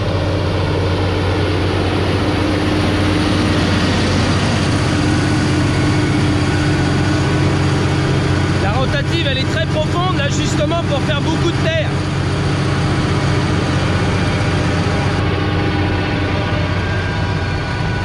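A power harrow churns and grinds through soil.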